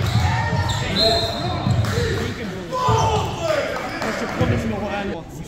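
Young men call out and shout to each other in a large echoing gym.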